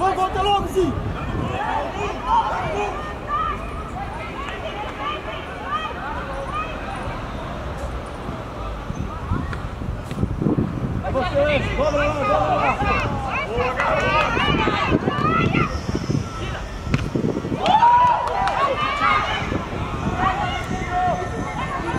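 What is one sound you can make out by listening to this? Young players shout and call out to each other across an open pitch.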